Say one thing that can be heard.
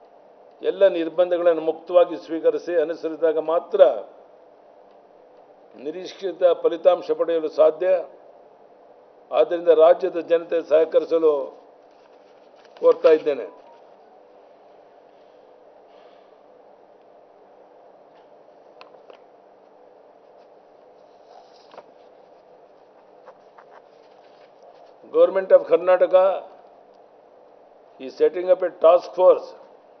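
An elderly man reads out through a microphone in short bursts with pauses.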